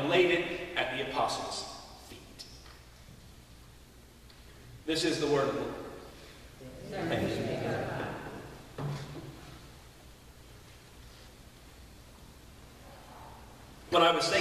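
A man speaks calmly into a microphone in an echoing hall, pausing between phrases.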